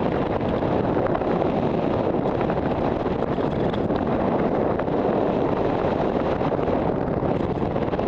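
Wind rushes and buffets loudly past a microphone high in the open air.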